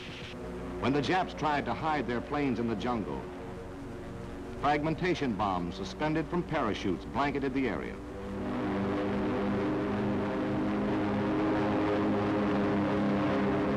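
An aircraft engine drones steadily overhead.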